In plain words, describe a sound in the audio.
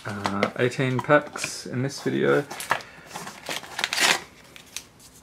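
Foil packets rustle and crinkle as hands handle them.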